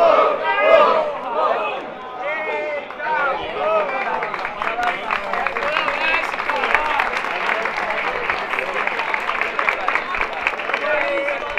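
Young men talk and laugh with excitement close by.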